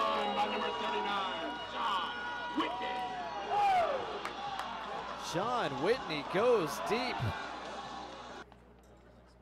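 Young men shout and cheer close by.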